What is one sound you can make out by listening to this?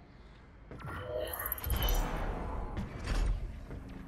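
A heavy metal door slides open with a hiss.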